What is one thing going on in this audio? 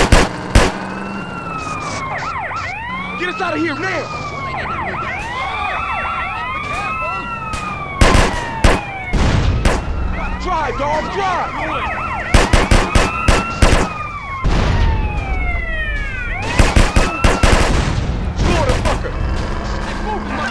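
A police siren wails, rising and falling.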